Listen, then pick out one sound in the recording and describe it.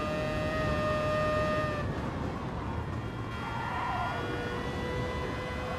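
A racing car engine roars at high revs, then drops in pitch as the car brakes.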